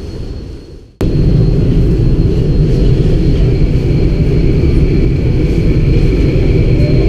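A train rumbles steadily while riding.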